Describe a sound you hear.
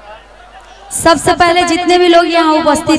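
A young woman sings loudly through a microphone and loudspeakers.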